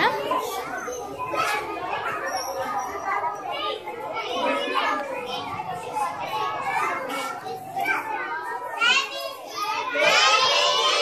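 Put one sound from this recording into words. A large group of young children chatter and call out nearby.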